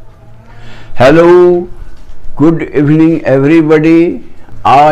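An elderly man speaks calmly and close to the microphone.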